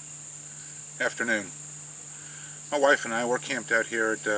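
A middle-aged man speaks calmly and close by, outdoors.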